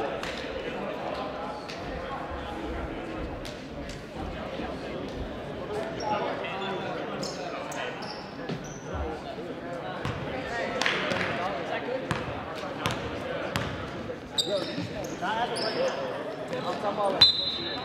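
Players and spectators call out and chatter in an echoing gym.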